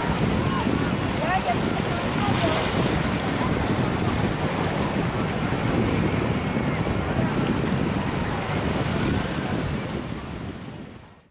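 Small waves wash and splash over rocks close by.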